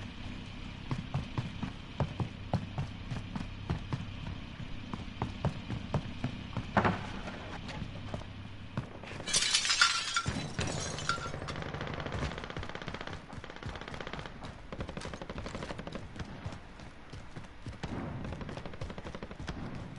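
Footsteps patter quickly on hard ground as a figure runs.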